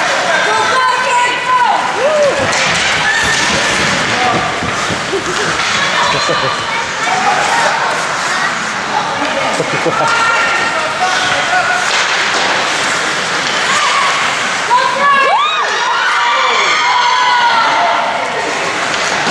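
Young players shout to each other across an echoing rink.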